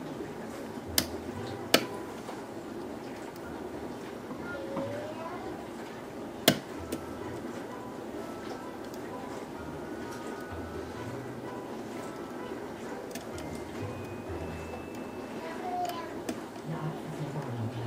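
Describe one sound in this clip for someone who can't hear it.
Small metal pins click inside a lock as it is picked.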